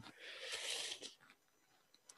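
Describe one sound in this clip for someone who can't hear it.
A brush swishes softly across paper.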